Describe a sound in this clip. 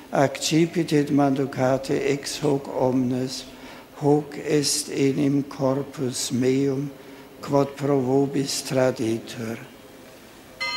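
An elderly man chants slowly into a microphone.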